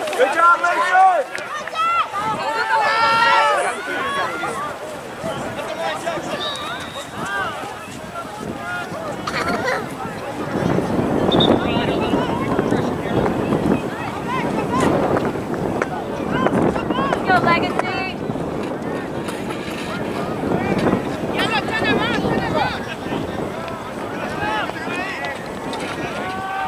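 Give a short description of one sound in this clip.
Young players shout to each other across an open outdoor field.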